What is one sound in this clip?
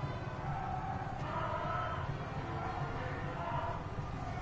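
A crowd of people murmurs and chatters nearby.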